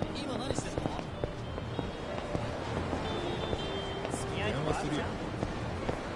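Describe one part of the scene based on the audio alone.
Footsteps walk along a hard street.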